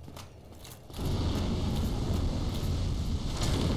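A burst of fire roars loudly.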